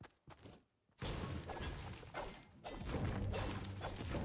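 A pickaxe strikes rock again and again.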